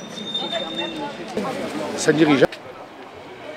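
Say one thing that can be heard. People chatter in a busy outdoor crowd.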